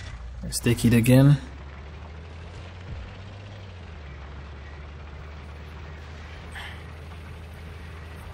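A truck engine hums low and steady as the truck drives along.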